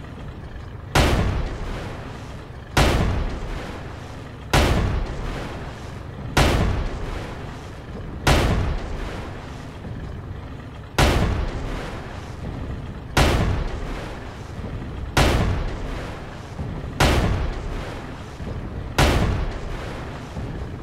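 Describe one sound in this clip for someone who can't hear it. A rifle fires loud single shots every two seconds or so, each echoing away.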